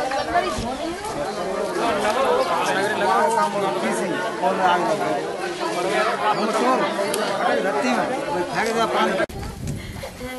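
A crowd of men talk loudly outdoors.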